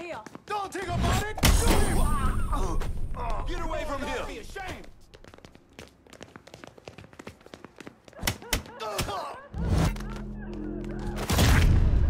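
Heavy blows thud during a fistfight.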